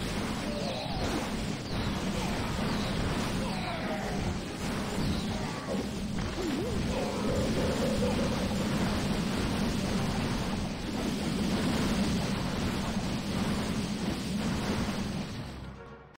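Explosions and fire rumble and crackle in a battle.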